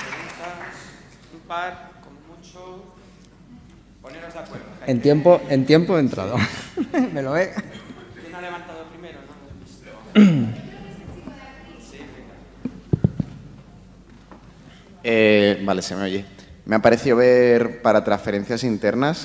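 A man speaks through a microphone into a large echoing hall.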